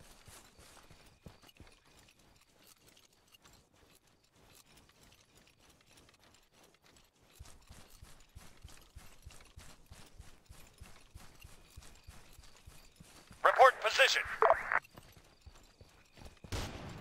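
Footsteps crunch steadily over hard ground.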